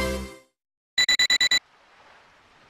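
A pager beeps several times in quick succession.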